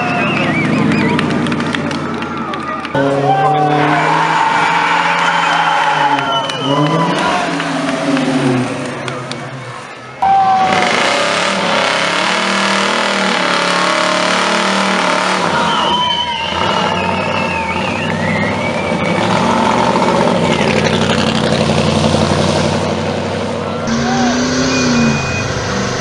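Tyres screech as cars spin their wheels.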